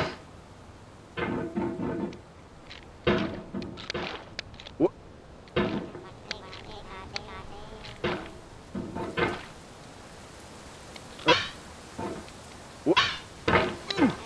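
A metal hammer knocks and scrapes against rock.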